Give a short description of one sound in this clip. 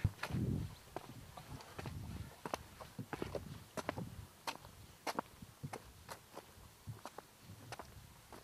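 Footsteps tread on grass and wooden steps.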